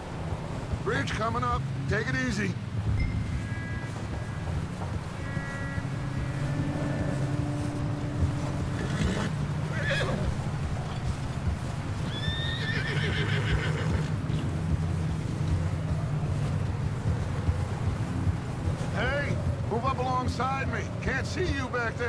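Horse hooves pound steadily at a gallop.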